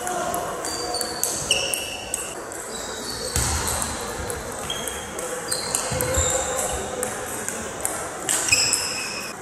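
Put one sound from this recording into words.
Ping-pong balls click sharply back and forth in a large echoing hall.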